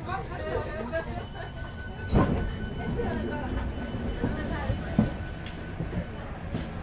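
A train rumbles as it slowly rolls to a stop.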